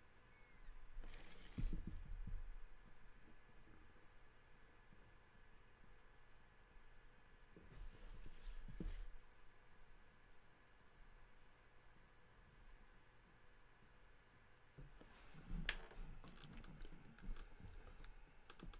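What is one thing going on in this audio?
A sheet of paper rustles and slides as it is shifted.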